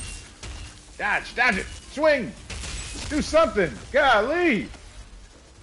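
A monstrous creature shrieks and snarls up close.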